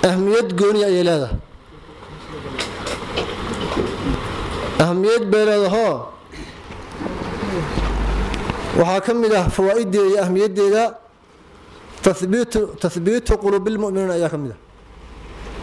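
A man recites in a slow, chanting voice into a microphone, pausing between phrases.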